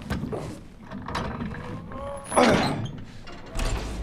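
A metal lever clanks as it is pulled down.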